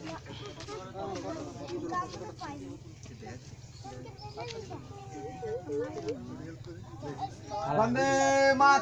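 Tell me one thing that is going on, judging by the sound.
Many children and adults chatter nearby outdoors.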